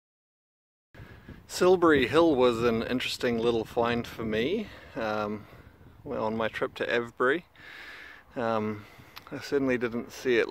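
A middle-aged man talks calmly and close to the microphone.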